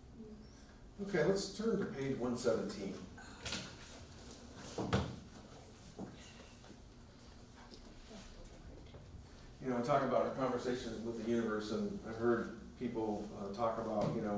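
A middle-aged man speaks calmly through a clip-on microphone.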